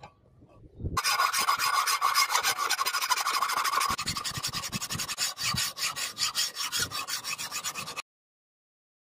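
A metal file rasps rhythmically across a steel bar.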